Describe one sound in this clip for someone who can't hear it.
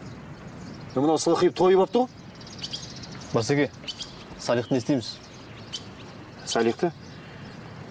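A man speaks firmly close by.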